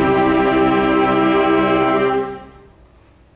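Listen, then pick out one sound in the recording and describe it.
A concert band holds a loud final chord, then stops sharply.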